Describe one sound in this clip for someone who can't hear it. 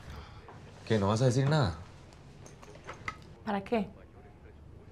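A man answers briefly in a low voice.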